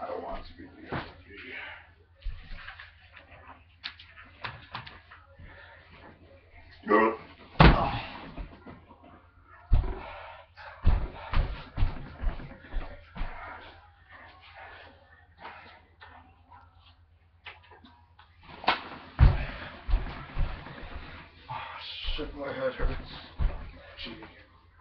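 Bodies thump onto a mattress.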